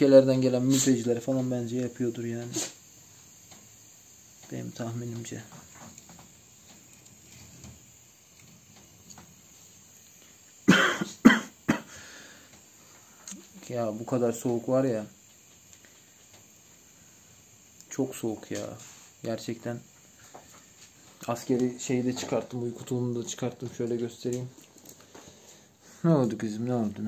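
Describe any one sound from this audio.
A young man talks calmly and close by, in short bursts with pauses.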